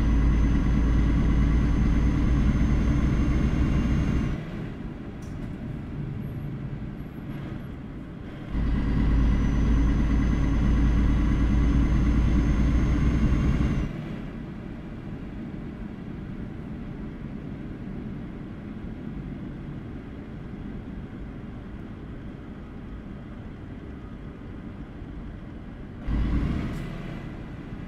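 A truck engine hums steadily, growing louder and quieter at times.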